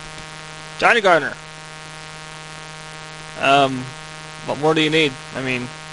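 Race car engines idle with a steady low hum.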